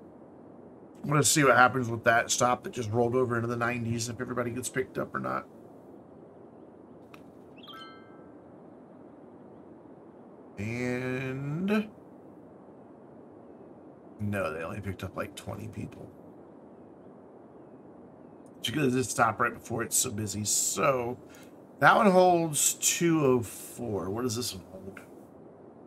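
A man talks casually into a close microphone, in bursts with pauses.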